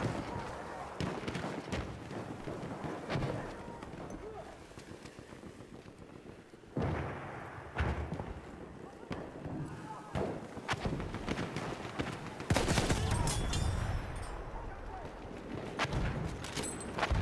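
Rifles and guns fire in rapid bursts nearby and far off.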